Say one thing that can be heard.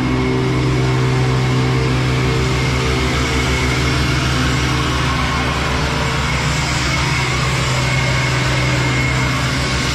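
Air rushes and hisses through a hose.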